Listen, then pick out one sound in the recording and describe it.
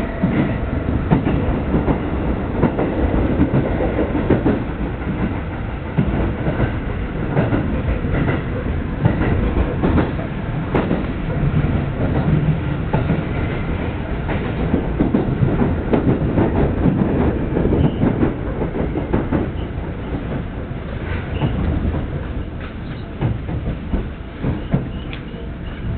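Wheels clatter rhythmically over rail joints.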